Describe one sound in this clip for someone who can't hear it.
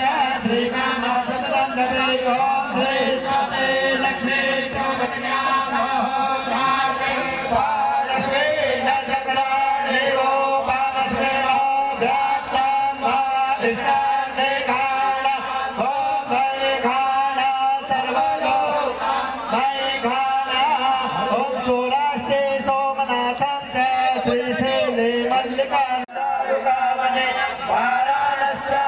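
A crowd of men sings together loudly outdoors.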